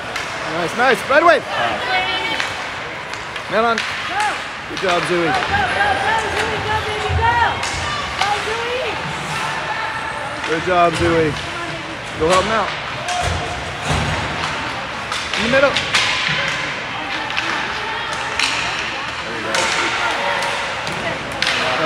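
Adult spectators shout loudly in a large echoing rink.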